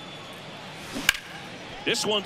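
A bat cracks against a baseball.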